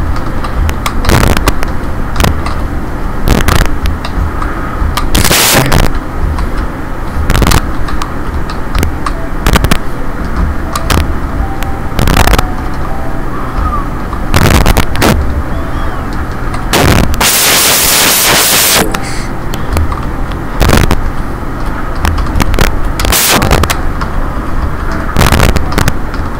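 A magic spell crackles and hums softly.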